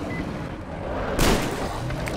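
A gun fires a loud burst with a fiery blast.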